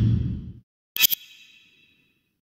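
A game menu plays a short bright chime.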